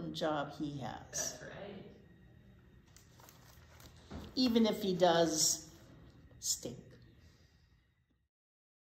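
An elderly woman reads aloud with animation, close by.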